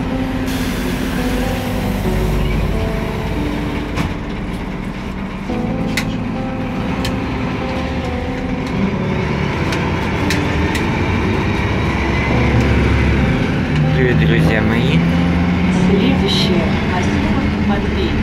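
A vehicle's engine hums steadily while driving on a highway.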